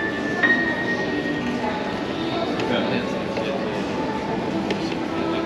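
A piano plays a flowing melody in a large, echoing hall.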